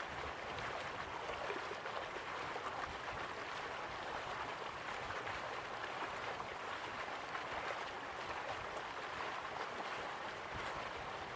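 Waterfalls rush and splash steadily.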